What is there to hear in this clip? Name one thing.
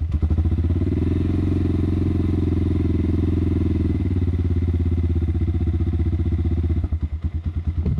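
A motorcycle engine idles with a steady, low rumble.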